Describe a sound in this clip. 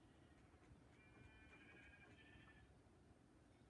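A sheep bleats in a video game as it is struck.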